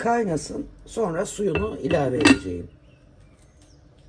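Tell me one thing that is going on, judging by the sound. A glass lid clinks onto a pot.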